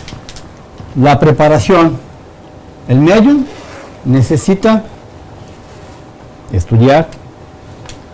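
A middle-aged man speaks calmly, in short bursts with pauses.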